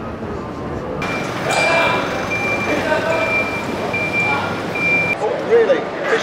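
A forklift reverse alarm beeps steadily nearby.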